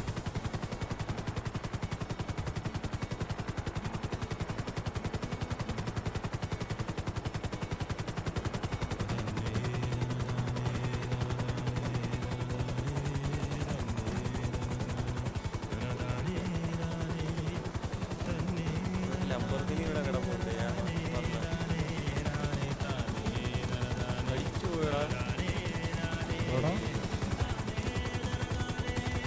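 A helicopter's rotor thumps rapidly and steadily throughout.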